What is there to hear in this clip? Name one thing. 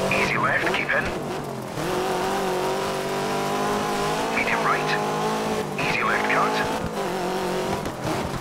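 A rally car engine roars at high revs.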